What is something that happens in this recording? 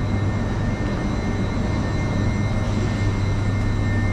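A train engine hums steadily at a platform.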